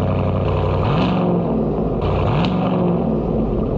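A truck engine revs briefly.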